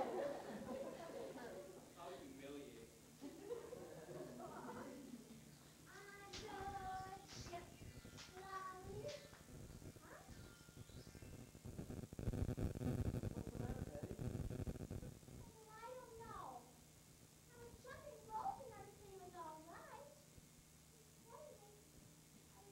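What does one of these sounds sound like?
Children speak loudly and expressively on a stage, heard from the audience.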